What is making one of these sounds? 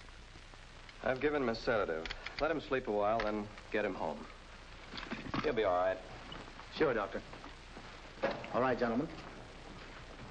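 A man speaks with authority in a room, among several men.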